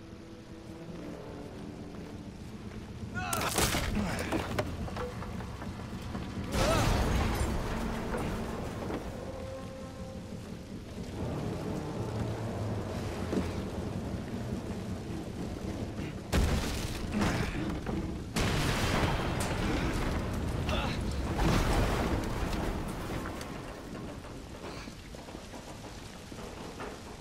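Fire crackles and roars steadily.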